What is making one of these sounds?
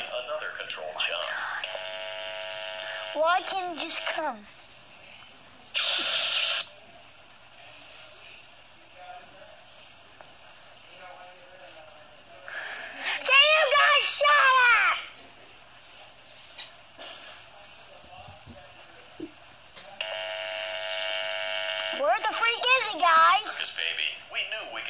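Electronic arcade game tones beep and warble from a small speaker in bursts.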